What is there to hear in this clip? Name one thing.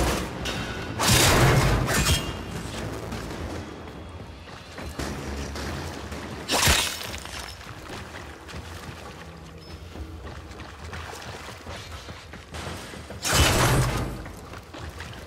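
Loud blasts boom with a rumbling echo.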